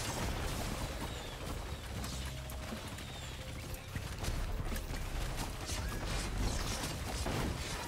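Laser guns fire in quick bursts of sharp zaps.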